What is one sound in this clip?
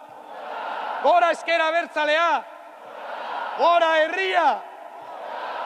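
A man shouts with passion through a microphone.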